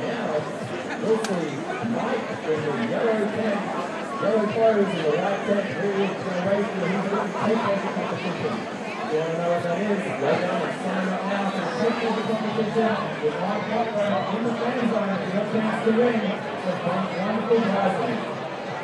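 A crowd of men and women chatters all around outdoors.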